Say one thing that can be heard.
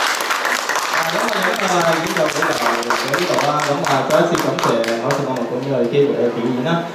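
A young man speaks calmly into a microphone, heard through loudspeakers.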